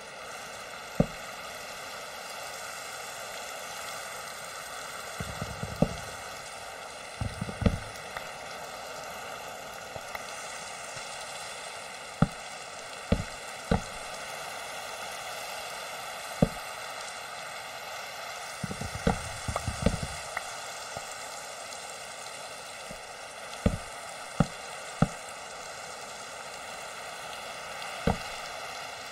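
Wooden blocks knock sharply as they are placed one by one.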